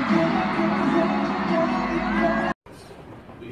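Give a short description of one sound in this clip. A young man sings through a microphone.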